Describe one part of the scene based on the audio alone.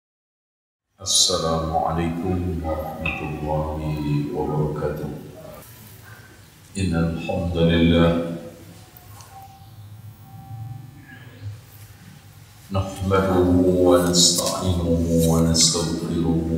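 A man preaches through a microphone and loudspeakers, his voice echoing in a large hall.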